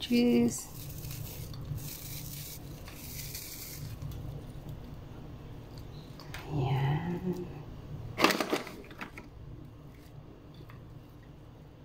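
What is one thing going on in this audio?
Shredded cheese patters softly as it is sprinkled by hand.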